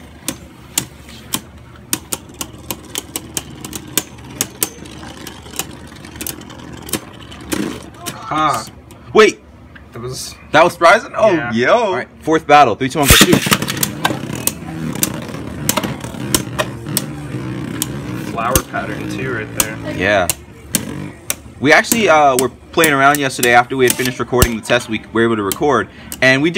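Spinning tops clash and click against each other in a plastic arena.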